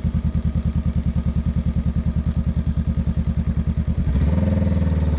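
A parallel-twin cruiser motorcycle idles with a lumpy beat.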